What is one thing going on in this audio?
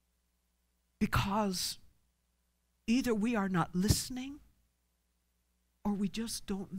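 A woman speaks with animation through a microphone, in short bursts.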